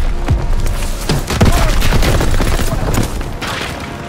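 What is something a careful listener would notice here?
A wooden door is kicked open with a heavy thud.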